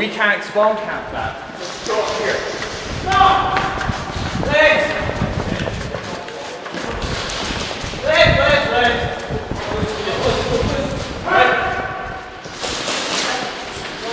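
Footsteps run on a concrete floor.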